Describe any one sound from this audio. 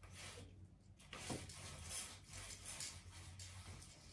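A roller blind whirs as it is pulled up.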